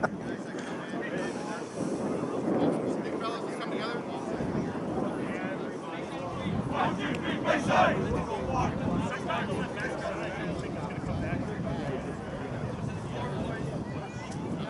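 Young men call out and shout from across an open field.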